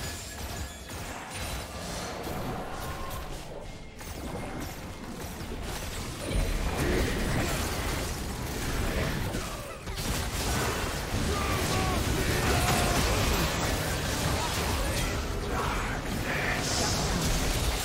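Game spell blasts and hits clash rapidly in a fierce battle.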